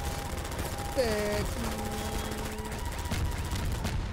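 A gun fires a stream of shots.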